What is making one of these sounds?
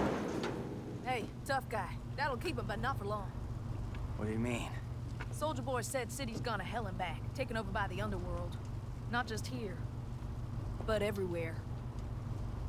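A young woman speaks casually.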